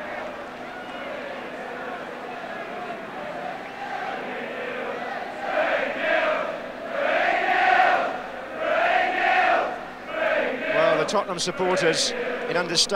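A large stadium crowd roars and chants in rising waves.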